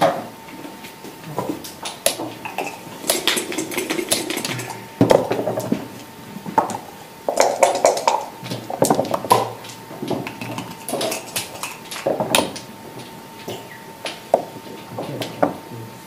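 Plastic checkers click against a board as they are moved.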